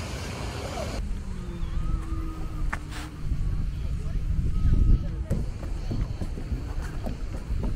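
Small waves lap at the shore.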